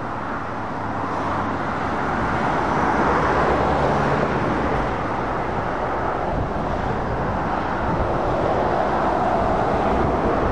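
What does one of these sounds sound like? A truck engine rumbles low as it passes close by.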